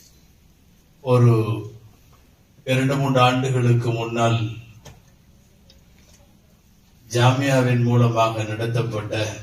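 A man speaks slowly and calmly into a microphone over a loudspeaker, in a large echoing hall, with pauses between phrases.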